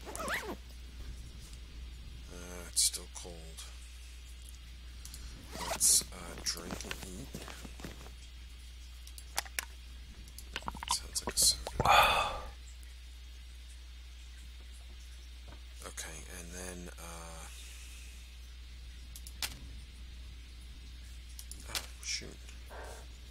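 Interface clicks tick sharply now and then.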